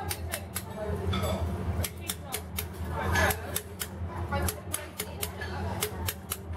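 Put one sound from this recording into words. A mallet taps a chisel into stone in quick, sharp knocks.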